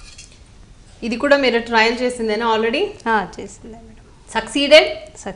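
A woman speaks calmly and clearly nearby.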